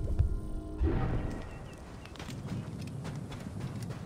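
Footsteps run across soft sand.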